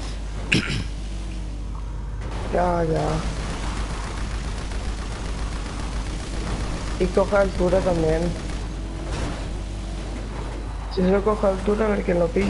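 An off-road buggy engine roars as the buggy drives over rough ground.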